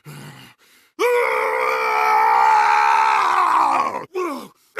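A man lets out a long, drawn-out roar.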